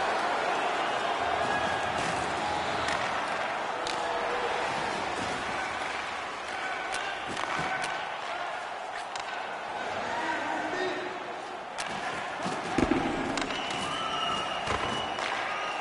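Skates scrape across the ice.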